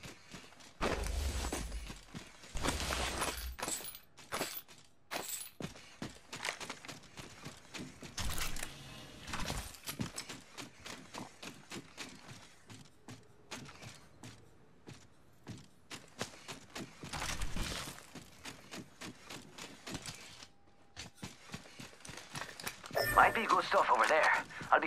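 Quick footsteps patter on hard metal floors.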